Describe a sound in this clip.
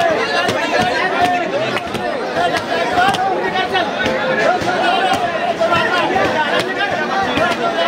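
A crowd of men and women sings and chants loudly close by.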